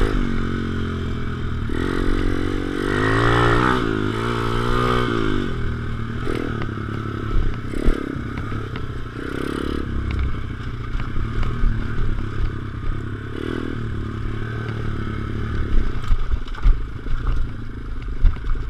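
A dirt bike engine revs and roars up close, rising and falling in pitch.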